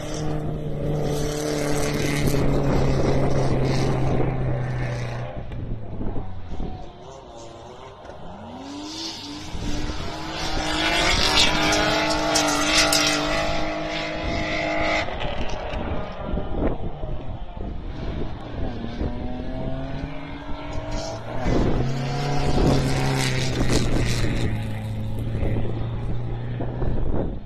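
A rally car engine roars and revs loudly as it races past on a dirt track.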